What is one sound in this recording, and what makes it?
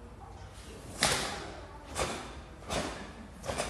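A karate uniform snaps sharply with quick strikes.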